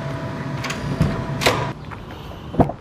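A car door handle clicks.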